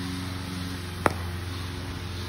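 A cricket bat sharply strikes a ball.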